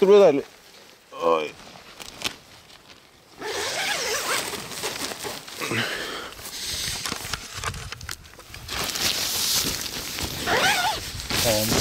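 A young man speaks close by in short phrases.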